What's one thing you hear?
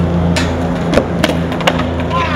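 A skateboard clatters as a skater falls.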